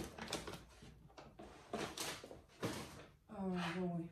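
Objects rustle and knock as they are handled.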